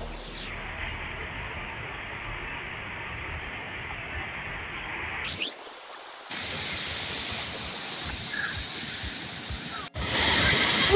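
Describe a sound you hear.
Water rushes steadily down a rocky stream.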